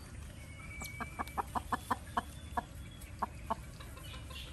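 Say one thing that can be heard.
A hen clucks in quick short bursts close by.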